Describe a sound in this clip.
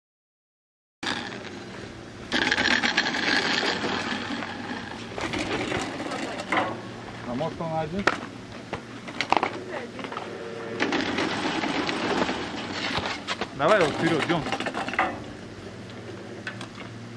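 A ski lift's large wheel turns with a steady rumble and creaking.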